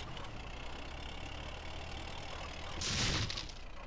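A heavy vehicle engine rumbles low and steady.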